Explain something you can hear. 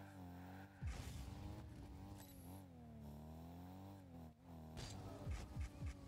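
A rocket boost roars.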